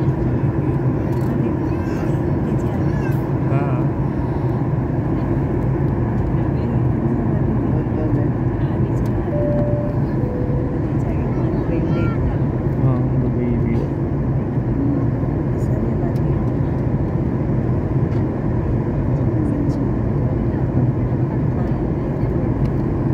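A jet engine drones with a steady low roar from inside an aircraft cabin.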